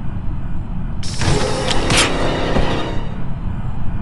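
A game's kill effect plays a sudden, harsh slashing burst that fades out.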